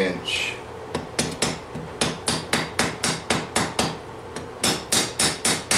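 A hammer rings rhythmically on hot metal on an anvil.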